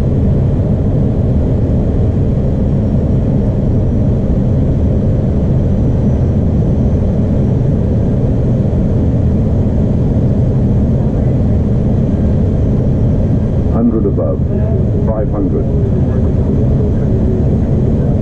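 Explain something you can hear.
A steady deep roar of airliner engines and rushing air goes on throughout.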